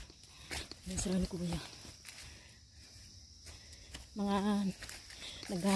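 Footsteps crunch on dry leaves underfoot.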